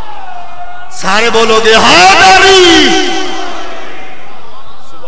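A crowd of men chant along loudly.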